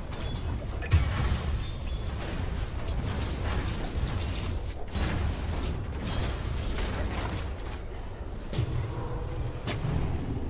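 Clashing fight sounds and spell blasts from a game crackle and thud.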